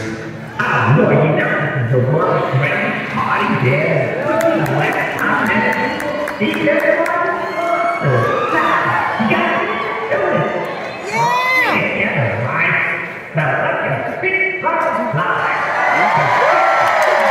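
A man speaks with animation through loud speakers, echoing outdoors.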